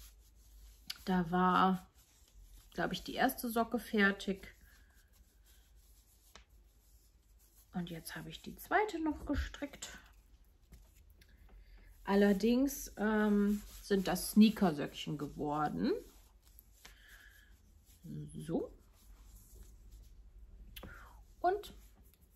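A young woman talks calmly and close by, in short phrases with pauses.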